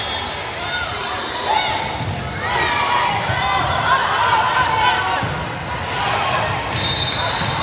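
Players' voices call out and echo in a large gym hall.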